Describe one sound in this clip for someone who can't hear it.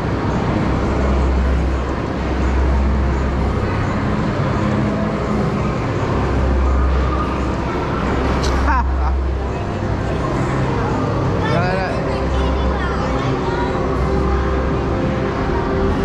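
A ride's motor hums low in long pulses as the ride rises and drops.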